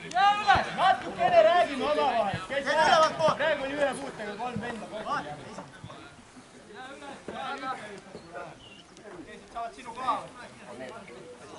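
Footballers shout to each other far off across an open field.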